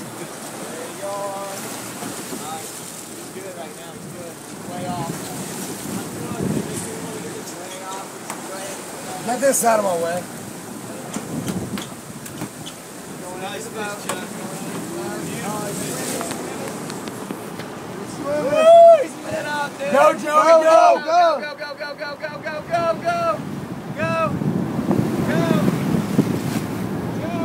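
Water sloshes and splashes against a boat hull.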